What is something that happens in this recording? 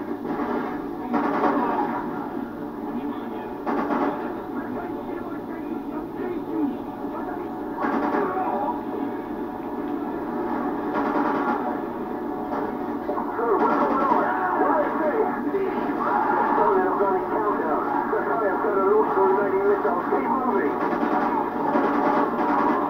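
Gunfire rattles in bursts through a small loudspeaker.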